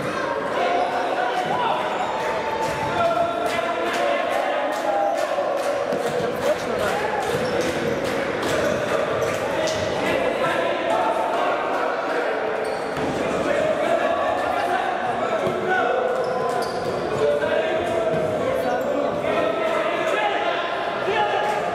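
Players' shoes squeak on a wooden court.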